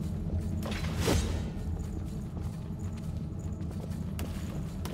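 A sword slashes and strikes a foe.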